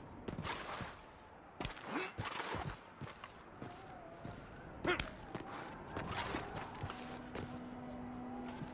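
Boots crunch on rocky ground as a man walks.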